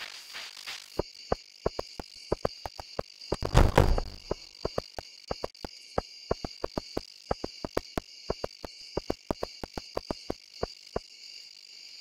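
Footsteps tap on a stone path.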